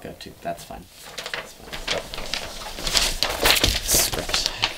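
Fabric rustles and scrapes close by.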